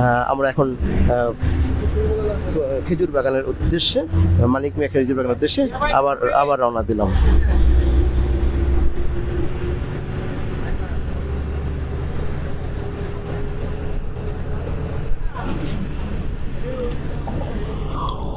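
A bus engine rumbles steadily while driving along.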